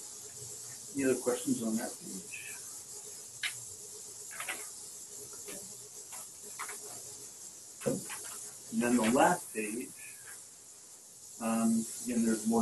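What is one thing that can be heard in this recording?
A man speaks calmly over an online call, with short pauses.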